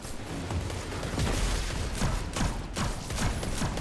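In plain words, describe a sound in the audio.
Energy blasts crackle and explode nearby.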